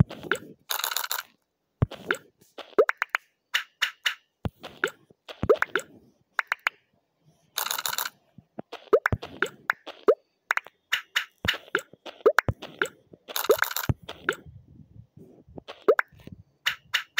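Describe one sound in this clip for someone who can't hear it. Game tiles clack and chime quickly as they stack onto each other.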